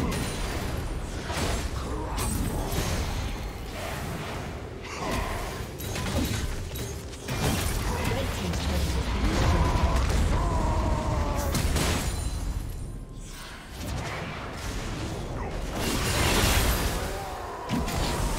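Spell blasts and sword clashes crackle in a fast game battle.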